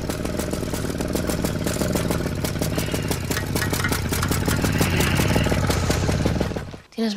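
A bicycle rattles along a bumpy dirt track.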